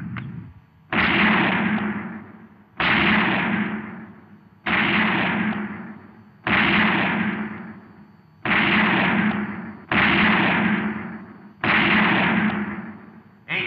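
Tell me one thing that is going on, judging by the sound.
Pistol shots fire at a steady pace, each echoing loudly in an enclosed room.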